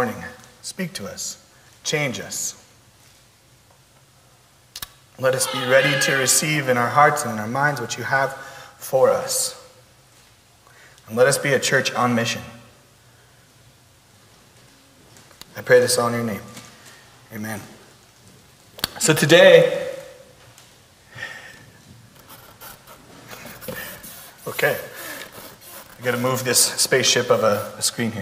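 A man speaks calmly into a microphone, with pauses.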